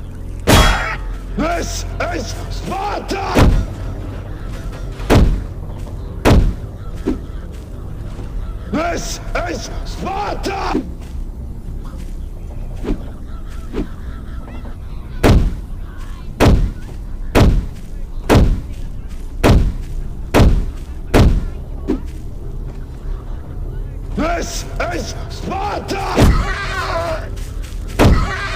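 Gunshots ring out in sharp, loud single blasts.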